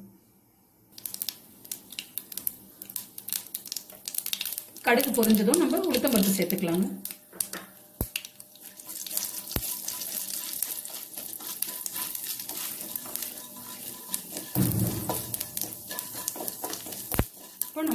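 Oil sizzles and seeds crackle in a hot pan.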